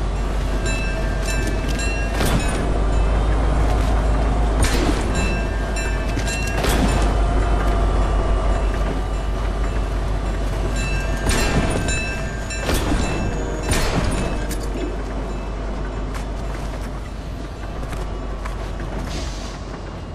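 Running footsteps thud on gravel and metal.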